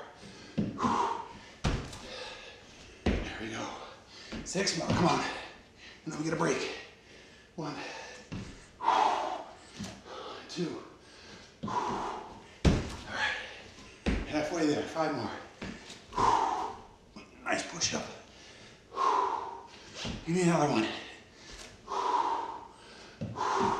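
A man speaks breathlessly nearby.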